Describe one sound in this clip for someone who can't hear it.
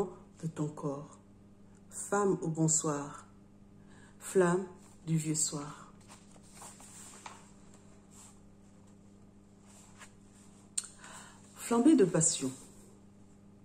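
A woman reads aloud slowly and calmly, close to a microphone, with long pauses.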